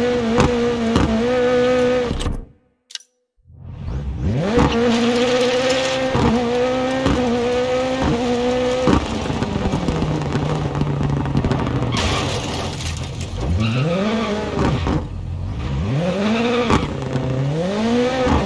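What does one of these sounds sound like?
Tyres skid and scrabble on gravel.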